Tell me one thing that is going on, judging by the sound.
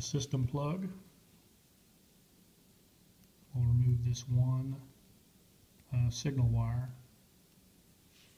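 A metal blade scrapes and clicks against a small plastic connector.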